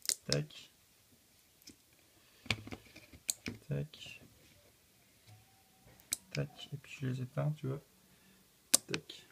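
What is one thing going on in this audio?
Relays on a relay board click sharply as they switch on and off.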